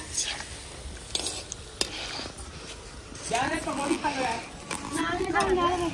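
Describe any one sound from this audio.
A metal ladle scrapes against a pan.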